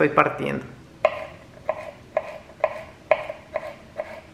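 A knife chops on a wooden board in regular thuds.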